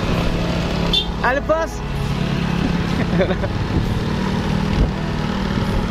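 A motorbike engine hums as a motorbike rides past and pulls away.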